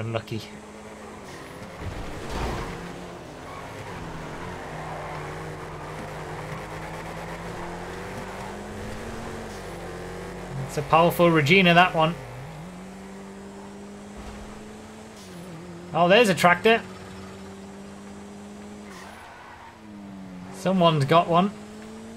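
A car engine hums steadily, rising and falling slightly in pitch.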